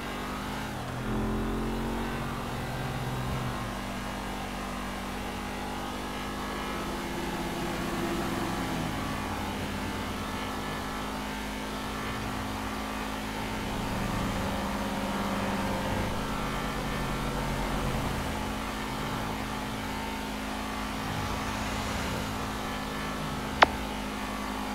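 A sports car engine hums steadily.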